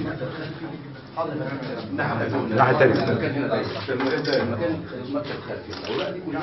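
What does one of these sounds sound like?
Several men murmur and talk over one another in a small room.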